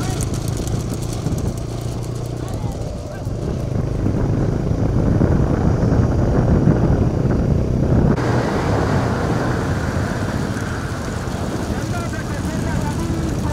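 Motorcycle engines drone steadily nearby.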